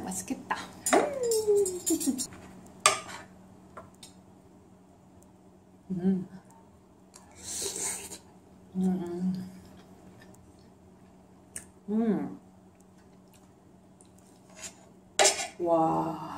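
Cutlery clinks and scrapes on a plate.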